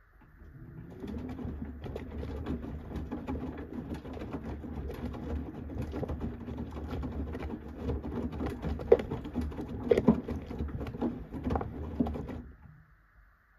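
Water splashes and drips inside a washing machine.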